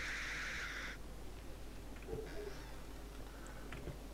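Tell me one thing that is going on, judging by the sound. A wooden door creaks open slowly.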